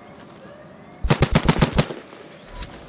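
A handgun fires a rapid string of sharp shots.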